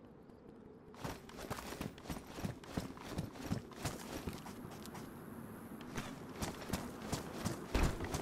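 Footsteps crunch quickly on dry ground.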